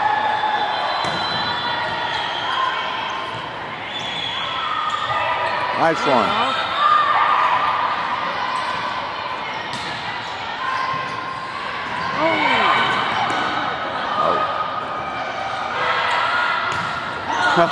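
A volleyball is struck with loud slaps.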